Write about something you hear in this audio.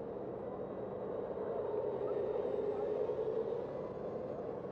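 A large bus rumbles past close by.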